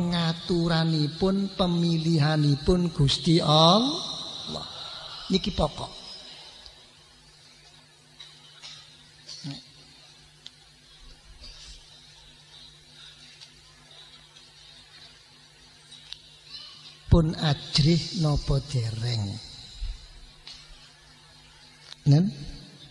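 An elderly man chants prayers aloud into a microphone.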